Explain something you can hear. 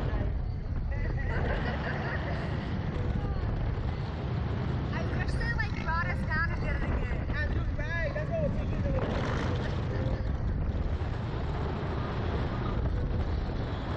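A young woman laughs and shrieks close by.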